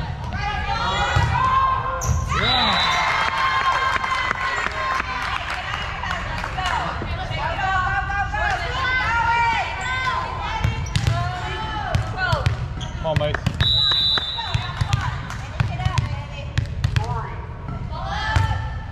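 Sneakers squeak sharply on a wooden floor in a large echoing gym.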